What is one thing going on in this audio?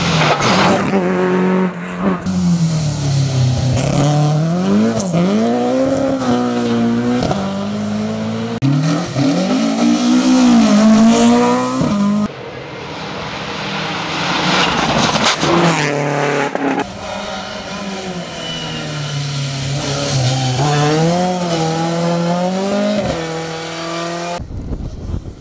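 Rally car engines roar and rev hard as cars speed past one after another.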